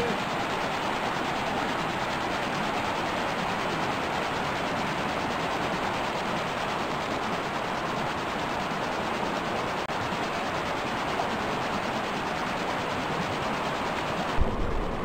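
A river rushes and splashes over rocks close by.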